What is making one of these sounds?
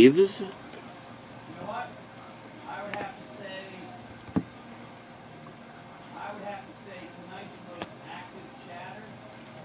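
Trading cards rustle and click softly as they are sorted by hand.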